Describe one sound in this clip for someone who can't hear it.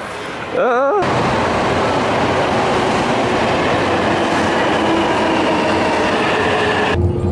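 A train rolls in with a steady rumble and a high whine.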